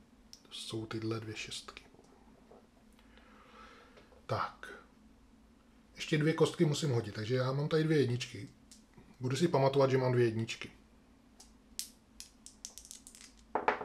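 Dice click together as a hand gathers them up.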